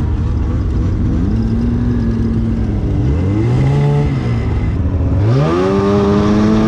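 Snowmobile engines whine and rise in pitch as they pass close by.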